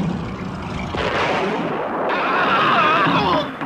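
An older man shouts with excitement.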